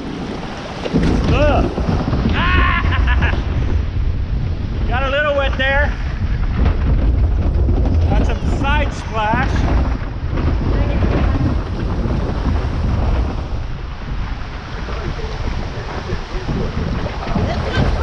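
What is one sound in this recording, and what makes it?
Water rushes and splashes loudly around a boat as it speeds down a chute.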